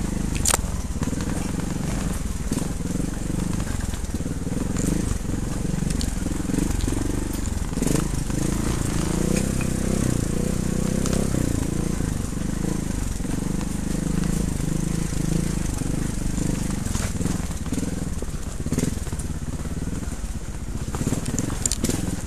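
Tyres crunch and rattle over loose stones.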